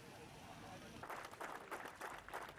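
Several men clap their hands.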